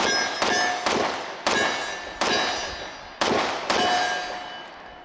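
A handgun fires loud shots in quick succession, each ringing out outdoors.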